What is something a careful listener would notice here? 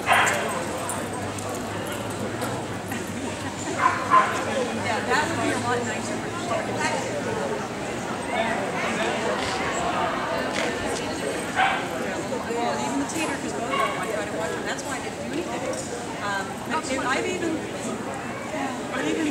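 A woman calls out commands to a dog with energy.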